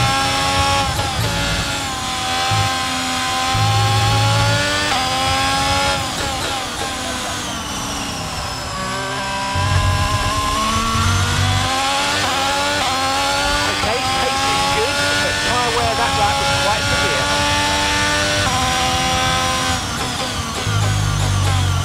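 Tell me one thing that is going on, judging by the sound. A Formula One car engine drops in pitch as it downshifts under braking in a video game.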